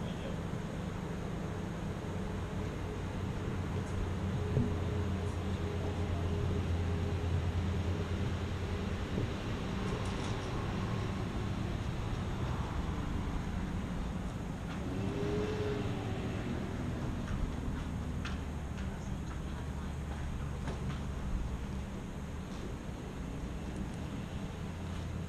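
A motorcycle engine idles with a low, steady rumble close by.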